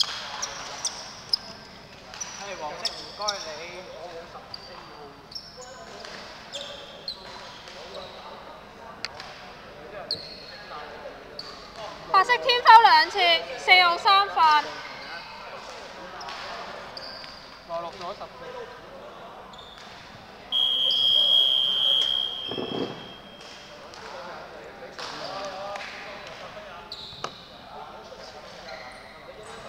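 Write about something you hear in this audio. Men talk nearby in a large echoing hall.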